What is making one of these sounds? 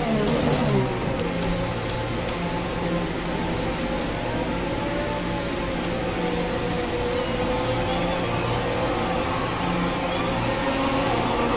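A racing car engine hums steadily at low revs, held back to a slow speed.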